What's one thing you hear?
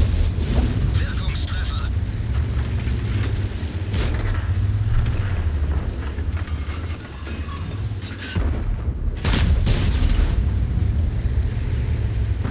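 Shells explode with heavy blasts.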